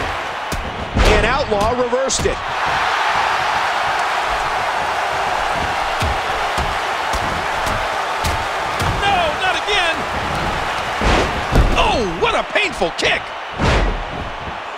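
Heavy bodies thud and slam onto a wrestling mat.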